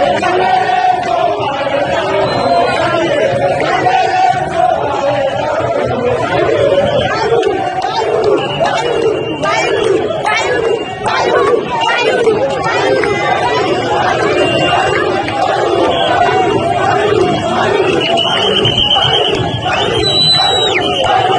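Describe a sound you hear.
A large crowd outdoors sings and chants loudly in unison.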